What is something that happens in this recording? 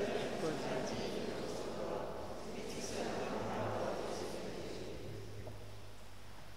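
A man speaks steadily through a microphone in an echoing room.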